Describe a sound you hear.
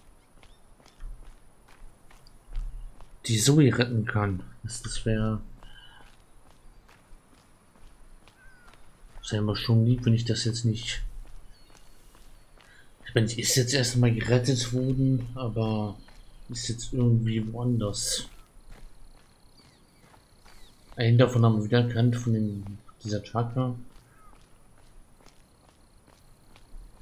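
Footsteps crunch steadily on dry ground.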